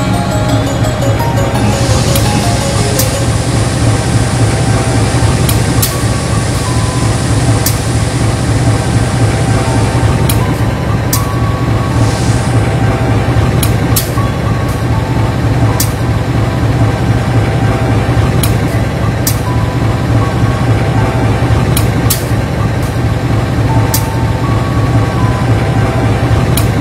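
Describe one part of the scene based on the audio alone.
Train wheels click over rail joints at an irregular pace.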